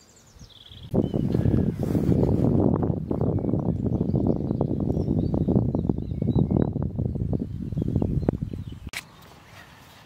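Strong wind rumbles and buffets outdoors.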